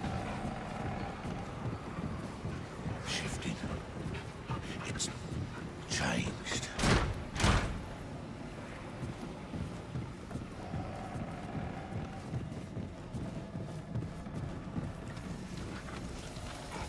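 Heavy footsteps thud on wooden floorboards.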